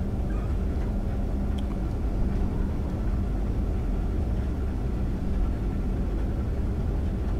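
A locomotive motor hums low and steady.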